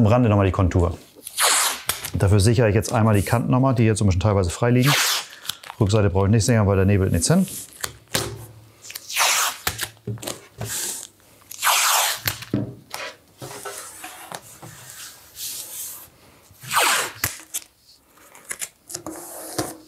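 Masking tape is pulled off a roll with a ripping sound.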